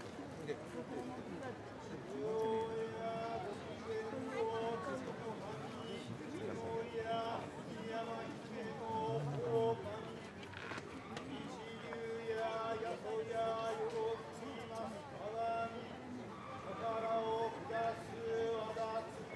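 A man chants slowly in long, drawn-out tones.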